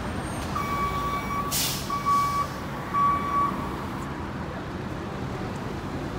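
A car drives slowly past close by.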